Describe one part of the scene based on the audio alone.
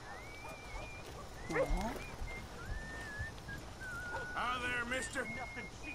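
A horse-drawn coach rattles past.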